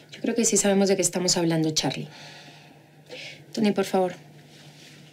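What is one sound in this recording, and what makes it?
A woman speaks nearby in a light, amused tone.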